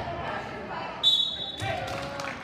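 A referee's whistle blows sharply in an echoing gym.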